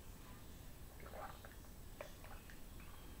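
A man sips a drink from a mug.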